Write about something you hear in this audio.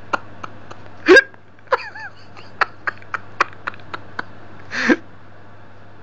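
A young boy cries out briefly.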